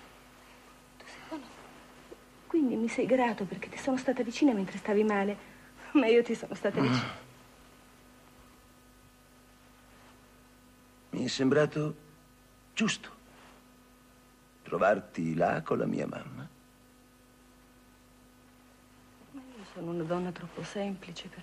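A woman speaks gently, close by.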